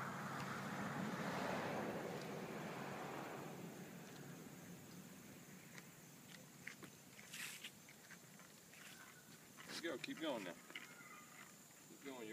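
Small bicycle tyres roll over concrete.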